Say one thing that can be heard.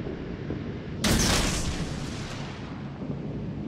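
A large gun fires with a loud boom.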